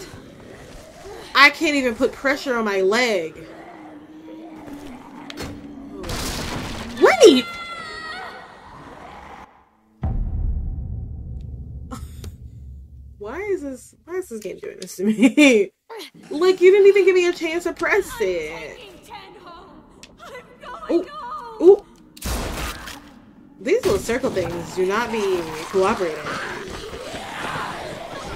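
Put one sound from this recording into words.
A young woman talks and exclaims with animation into a close microphone.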